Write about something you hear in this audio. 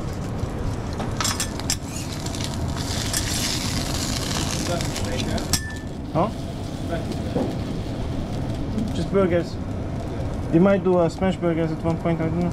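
A metal spatula scrapes across a hot griddle.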